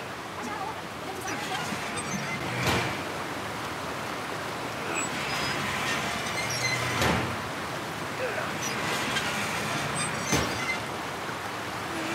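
A metal valve wheel creaks and clanks as it turns.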